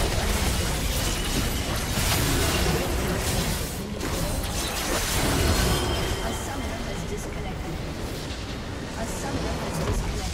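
Towers and structures explode and crumble.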